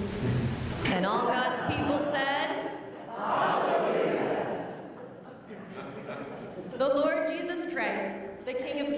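A child speaks clearly through loudspeakers in a large echoing hall.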